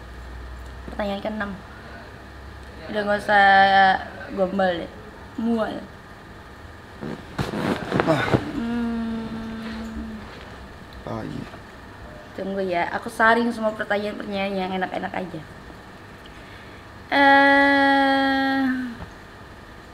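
A young woman speaks casually and playfully, close by.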